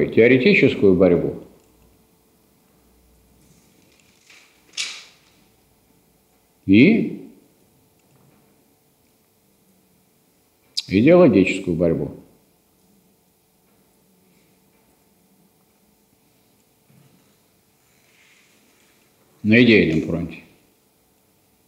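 A man speaks in short bursts to a room, with pauses between.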